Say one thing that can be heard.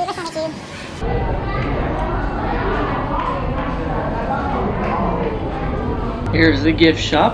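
A crowd of people chatters in a busy indoor space.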